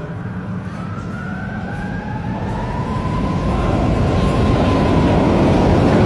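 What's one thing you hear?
Tram wheels squeal with a high, drawn-out whine.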